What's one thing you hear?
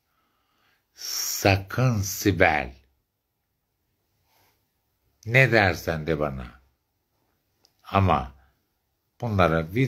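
A woman speaks close up, calmly, in short phrases with pauses.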